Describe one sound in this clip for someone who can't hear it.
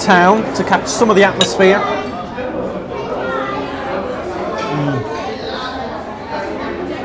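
People chatter in the background of a busy room.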